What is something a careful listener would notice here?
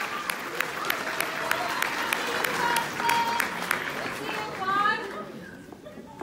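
A crowd of young women cheers loudly in an echoing hall.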